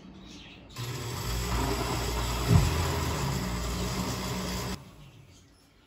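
A blender whirs loudly.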